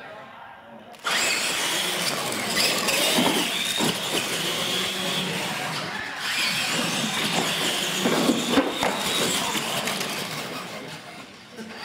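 Small electric motors whine loudly as toy trucks race across a hard floor.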